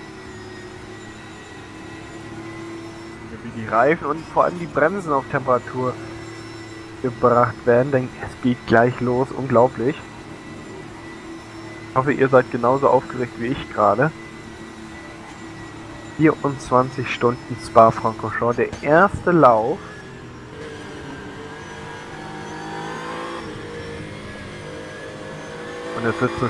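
A race car engine drones steadily and rises in pitch as the car speeds up.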